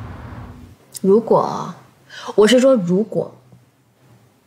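A young woman speaks softly and hesitantly.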